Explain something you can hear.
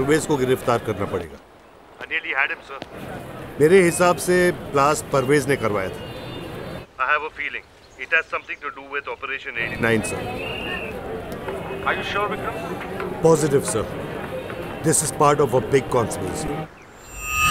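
A man speaks tensely on a phone, close by.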